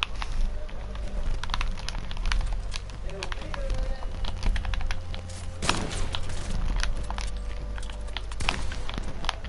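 Building pieces snap into place with quick, sharp clacks.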